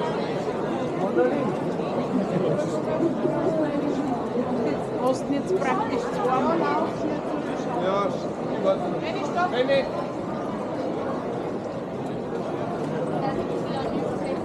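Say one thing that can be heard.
A crowd of people chatter on a busy street outdoors.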